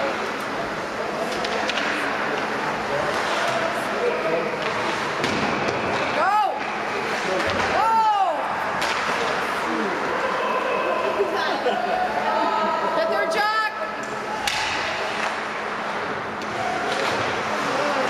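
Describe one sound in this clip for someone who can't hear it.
Spectators murmur and chatter nearby.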